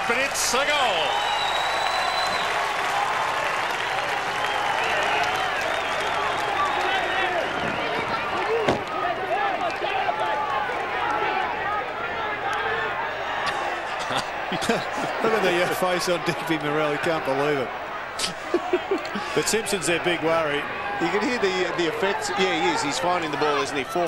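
A large crowd cheers and roars outdoors.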